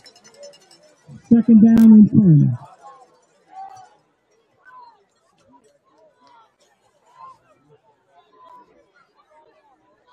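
A crowd murmurs and cheers faintly outdoors.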